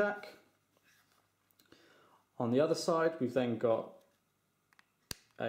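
Fingers click and rub against a small plastic pen.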